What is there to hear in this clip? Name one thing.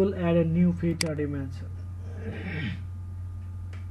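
A computer mouse clicks.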